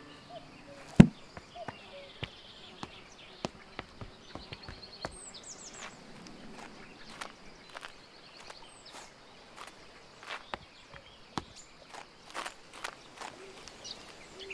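Footsteps crunch slowly along a gravel path.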